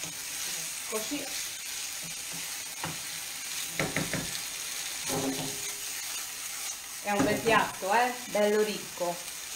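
Food sizzles softly in a frying pan.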